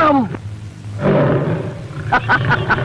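A lion roars close by.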